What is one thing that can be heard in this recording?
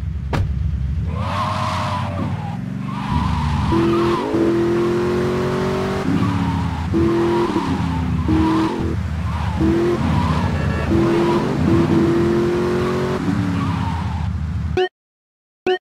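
A sports car engine starts and revs loudly as the car speeds off.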